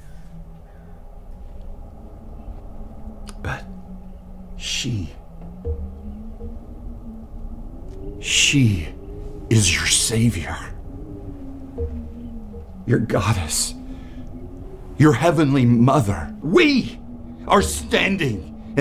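A man chants in a low, drawn-out voice close by.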